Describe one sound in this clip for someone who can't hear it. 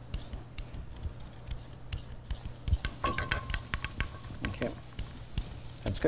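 A whisk clinks quickly against a metal bowl.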